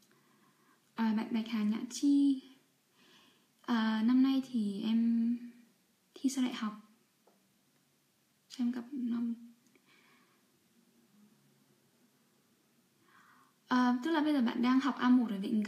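A young woman talks calmly and close by, with pauses.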